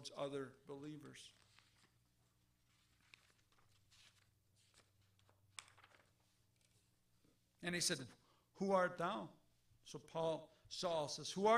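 A middle-aged man speaks slowly and earnestly into a microphone, with pauses.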